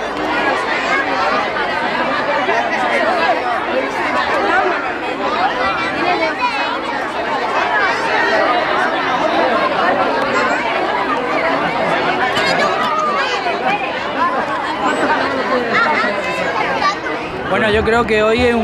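A crowd chatters outdoors.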